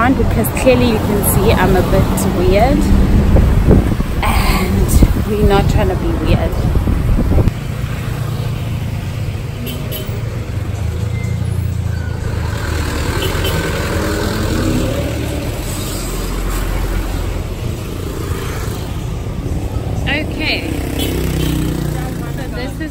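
Traffic rumbles past on a busy street.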